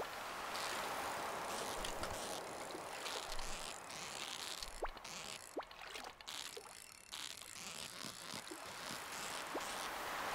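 A fishing reel whirs in short, repeated bursts.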